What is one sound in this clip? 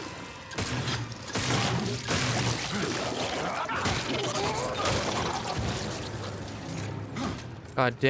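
Heavy blows and thuds ring out in a struggle.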